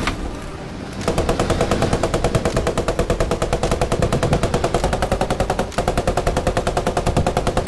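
A heavy vehicle's tracks clatter rapidly.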